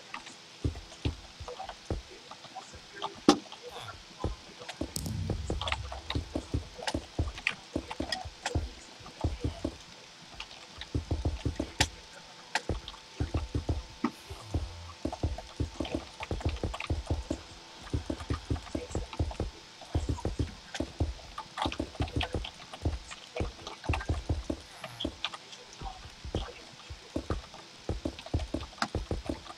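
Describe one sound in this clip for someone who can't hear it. Blocks are placed with quick, soft thuds.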